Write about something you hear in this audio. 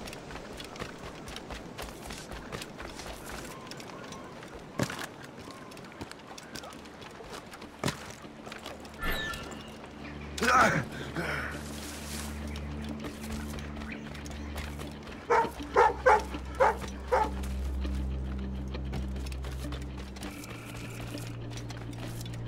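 Footsteps patter quickly over stone and grass.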